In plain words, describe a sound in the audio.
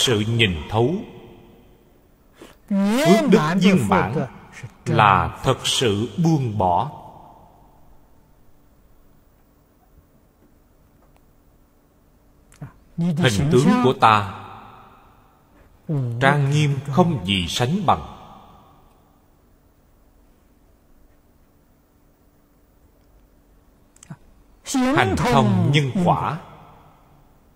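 An elderly man speaks slowly and calmly, close to a microphone, with long pauses.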